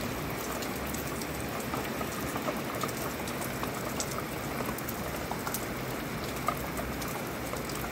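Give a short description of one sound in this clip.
Raindrops patter and tap on a metal railing.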